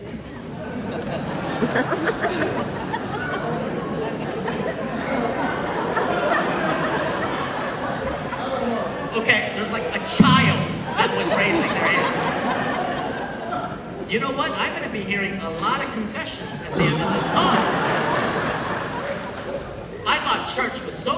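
A crowd murmurs and chatters in the background.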